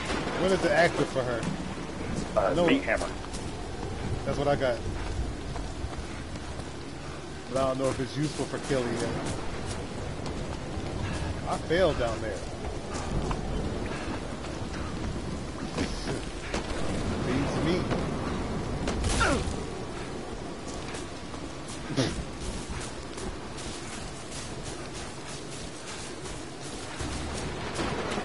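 Footsteps crunch over a forest floor.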